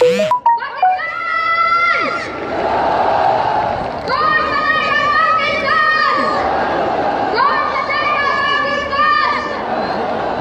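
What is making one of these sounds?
A huge crowd cheers and roars outdoors.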